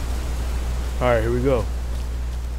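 A young man says a few words briefly into a microphone.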